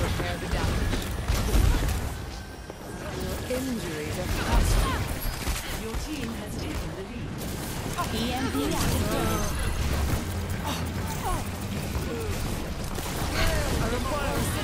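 A video game beam weapon hums and crackles as it fires.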